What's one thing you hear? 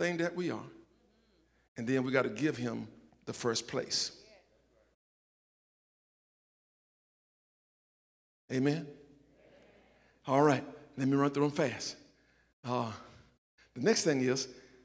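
An older man speaks with animation into a microphone, pausing between phrases.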